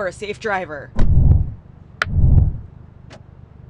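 A car door shuts with a dull thump.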